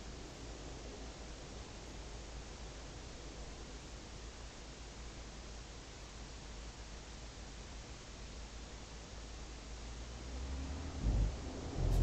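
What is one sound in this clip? A truck engine hums steadily, growing louder toward the end.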